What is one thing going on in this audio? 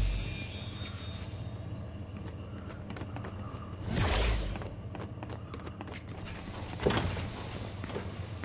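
Footsteps run across a wooden floor.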